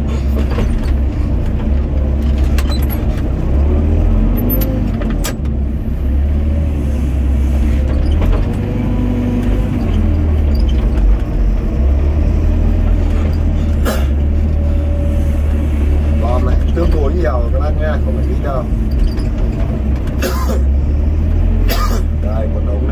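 Soil and clods thud and scrape as an excavator bucket digs.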